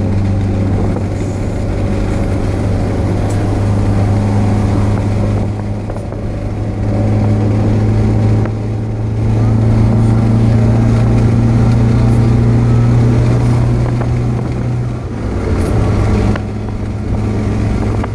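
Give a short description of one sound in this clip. A car engine hums steadily inside the cabin while driving.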